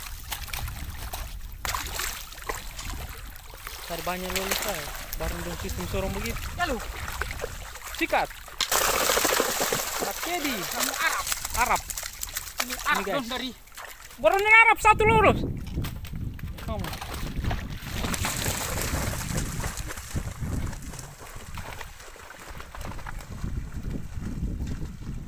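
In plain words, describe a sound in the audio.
Feet slosh through shallow water.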